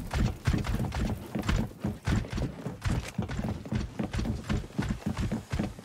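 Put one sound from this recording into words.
Footsteps thud quickly on metal stairs.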